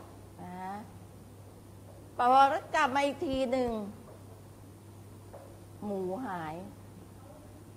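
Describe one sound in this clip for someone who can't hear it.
An older woman speaks calmly in short phrases, close by.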